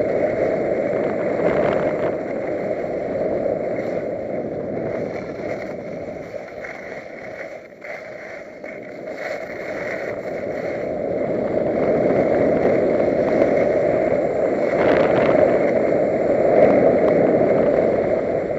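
Wind rushes past a skier.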